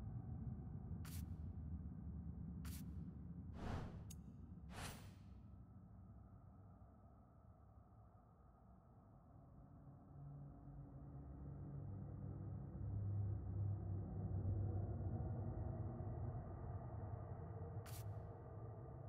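Short whooshing clicks sound as book pages flip.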